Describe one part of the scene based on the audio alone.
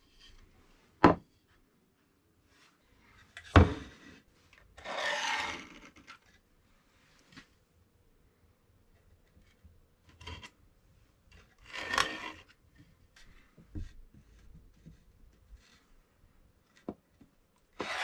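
Wooden boards knock and clack against a wooden table.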